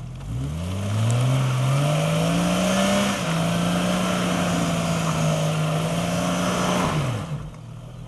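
Tyres spin and churn through thick mud.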